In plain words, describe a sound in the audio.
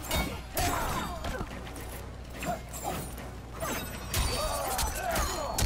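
Heavy blows land with loud thuds.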